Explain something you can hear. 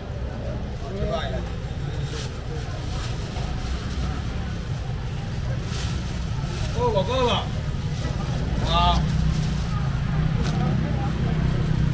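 A busy market crowd murmurs and chatters all around.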